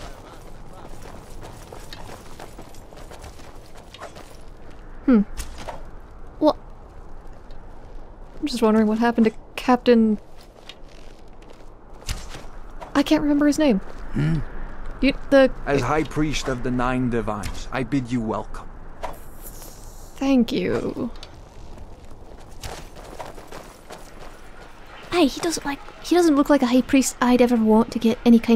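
Footsteps tread on stone paving.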